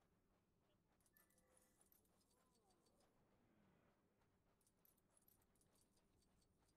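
Coins jingle as they are picked up.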